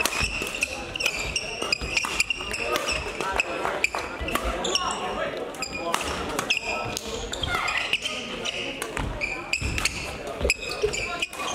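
Rackets smack a shuttlecock back and forth.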